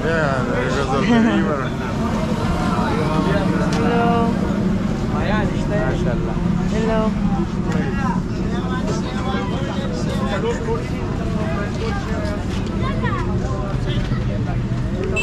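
Several men talk loudly nearby on a busy street.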